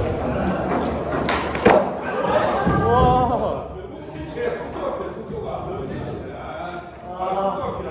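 A skateboard's wheels roll over a wooden floor.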